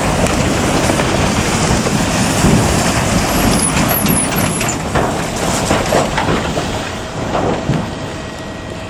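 A heavy truck with a trailer rumbles past close by.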